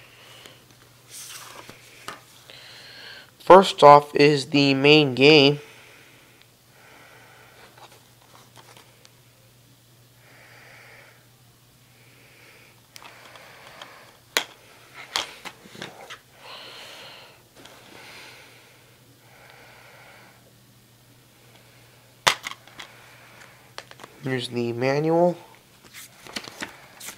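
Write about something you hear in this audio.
Plastic game cases rustle and tap as hands handle them.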